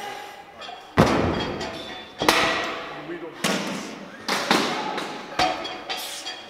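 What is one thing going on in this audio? A heavy weight thuds onto a hard floor.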